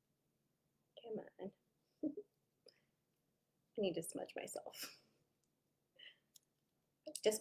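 A woman speaks calmly and close by, in short bursts.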